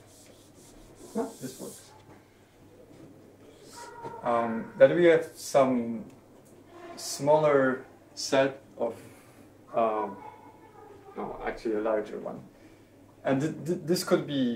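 A man speaks calmly, explaining in a quiet room.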